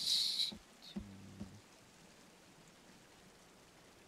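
A wooden plank knocks into place.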